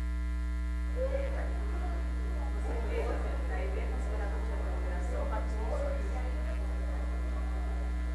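Several men and women murmur and talk in a large room.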